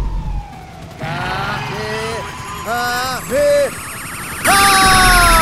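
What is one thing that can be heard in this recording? An energy blast charges up with a wavering electric whine.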